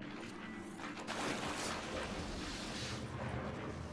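Feet splash through shallow water.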